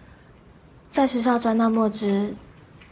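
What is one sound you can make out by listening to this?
A young woman answers softly.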